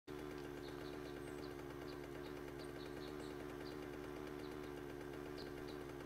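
A motorbike engine hums steadily as the bike rides along.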